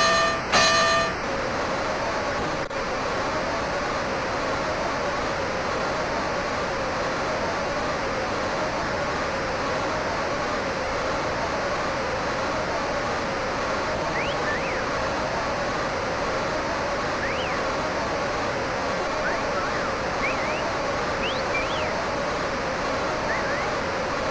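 A large crowd roars and cheers steadily.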